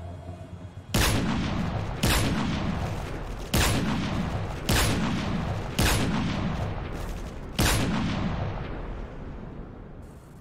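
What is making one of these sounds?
Sharp rifle shots ring out one after another, each followed by a rolling echo.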